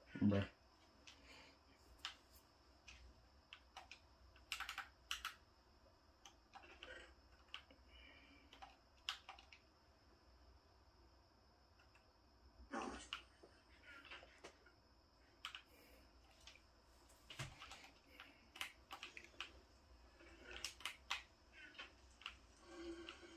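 Short video game sound effects click and pop from a television speaker.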